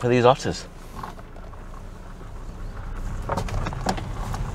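A car engine hums as the car pulls away.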